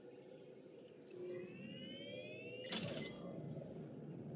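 Holographic globes flicker on with a shimmering whoosh.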